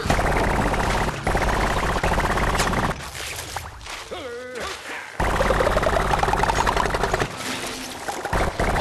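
Rapid shots fire in quick bursts.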